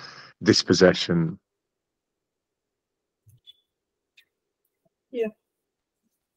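An elderly man speaks calmly through an online call.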